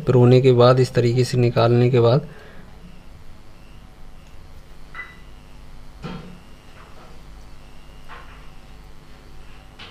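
Metal tweezers tap and scrape lightly on a small circuit board.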